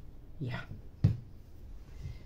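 A small plastic bottle is set down on a table with a light knock.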